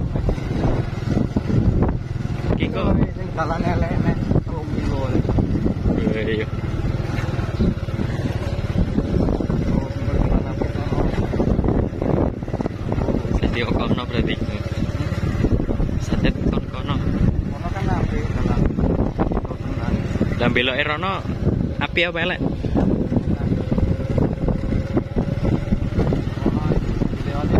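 A motorcycle engine runs while riding.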